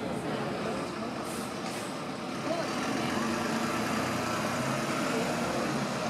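A bus drives past close by with its engine rumbling.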